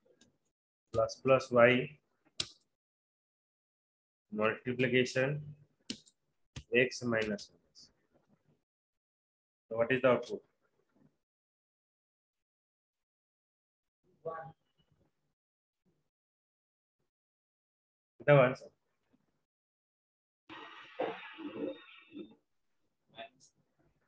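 A young man speaks calmly in short phrases through a computer microphone, with pauses between them.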